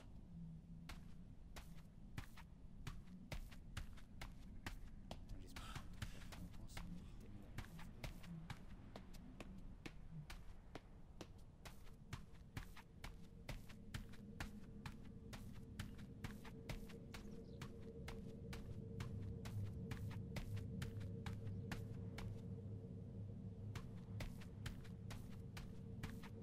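Footsteps crunch quickly through snow and brush.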